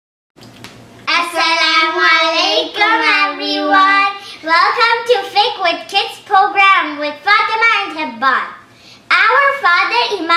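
A young girl speaks clearly and cheerfully close to a microphone.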